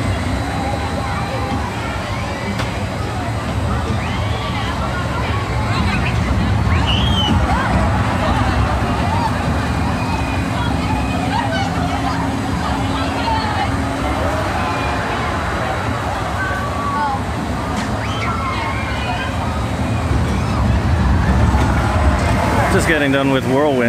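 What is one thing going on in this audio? Ride cars rumble and clatter along a track.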